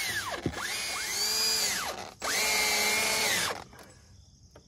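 A cordless drill whirs in short bursts, speeding up and slowing down.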